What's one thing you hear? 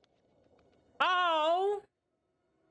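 A creature lets out a loud, wavering shriek.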